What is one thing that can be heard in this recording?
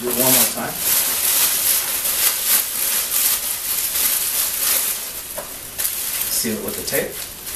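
A man speaks calmly close by.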